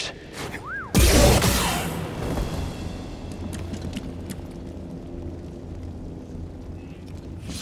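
A lightsaber hums steadily.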